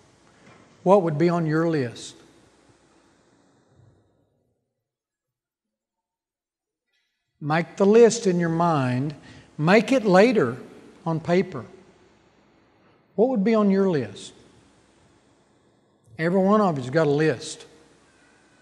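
An elderly man speaks with emphasis through a microphone, in short phrases with pauses.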